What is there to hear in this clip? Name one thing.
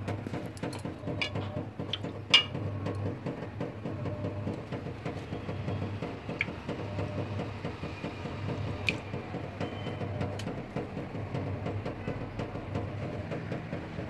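A hand splashes meat about in a metal pot of water.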